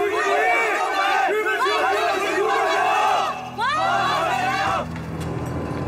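A large crowd of men and women shouts slogans together in unison.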